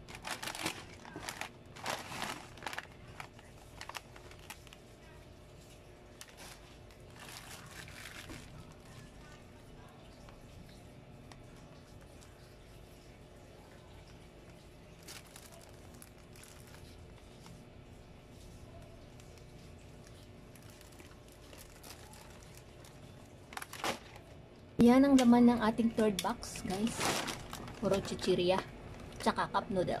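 A cardboard box scrapes and thumps as things are put in.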